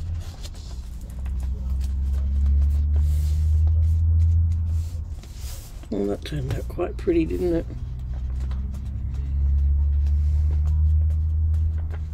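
Paper pages rustle and crinkle as they are turned by hand.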